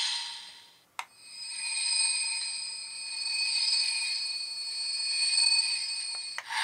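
A toy belt plays a pulsing, wavering electronic tune.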